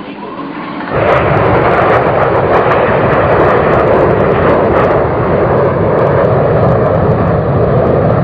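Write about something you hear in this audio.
A propeller plane roars loudly as it flies low overhead.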